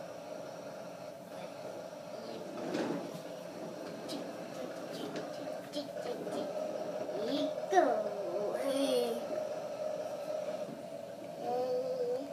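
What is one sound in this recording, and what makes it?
A toy steering wheel plays a beeping electronic tune.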